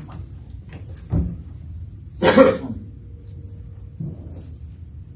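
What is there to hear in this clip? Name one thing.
Footsteps thud on a wooden platform.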